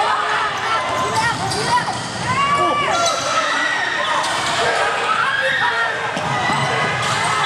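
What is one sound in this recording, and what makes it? Spectators chatter and shout in an echoing hall.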